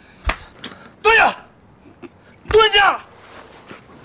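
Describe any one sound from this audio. A middle-aged man groans and cries out in pain.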